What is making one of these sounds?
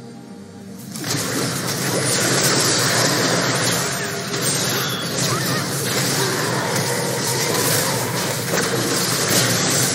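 Magic spells crackle and burst in a noisy fight.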